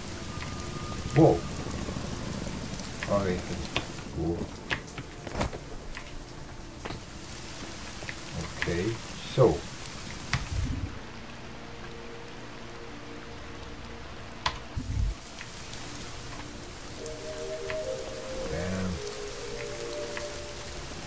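An elderly man talks calmly into a close microphone.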